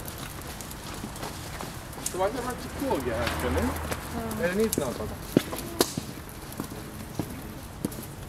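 A helicopter drones faintly in the distance.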